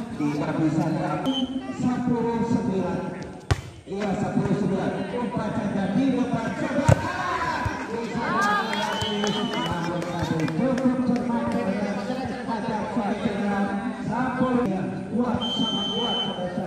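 Men shout and call out outdoors during a game.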